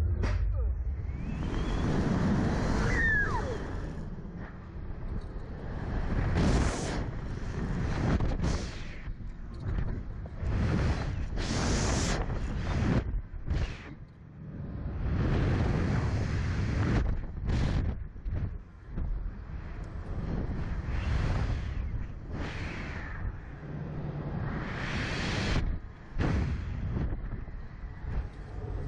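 Wind roars and buffets past loudly, rising and falling in gusts.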